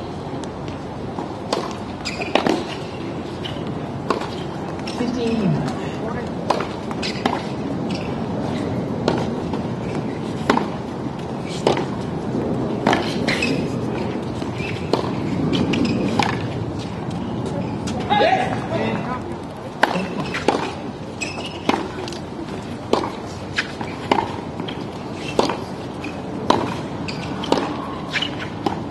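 A tennis racket strikes a ball with sharp pops, again and again.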